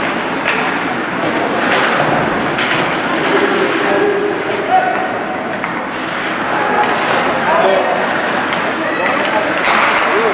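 Hockey sticks clack against the puck.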